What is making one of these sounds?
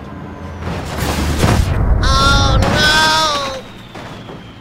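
A truck crashes into a bus with a loud metallic crunch.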